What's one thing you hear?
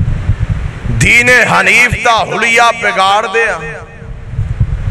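A man recites in a drawn-out, singing voice through a microphone, with echo.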